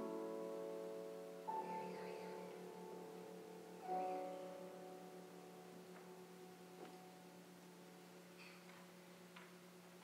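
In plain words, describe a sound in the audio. A grand piano plays final chords that ring out and slowly fade in a large hall.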